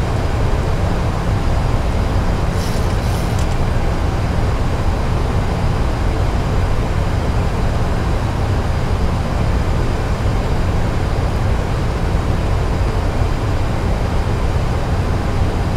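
Jet engines roar with a steady, deep rumble.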